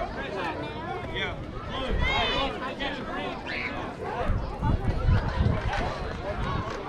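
Young players and adults call out and chatter across an open field.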